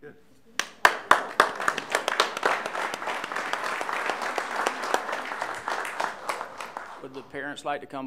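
A crowd claps and applauds.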